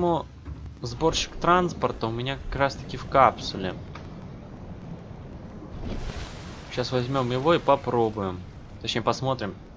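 Water swirls and bubbles around a swimmer.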